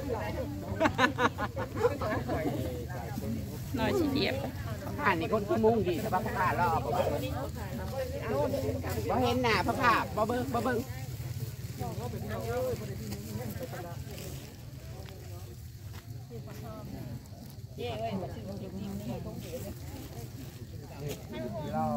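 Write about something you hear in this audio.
Many men and women chat nearby outdoors.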